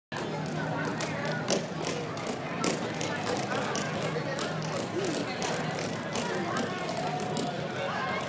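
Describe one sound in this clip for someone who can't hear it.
Small feet patter and tap on a hard stage floor.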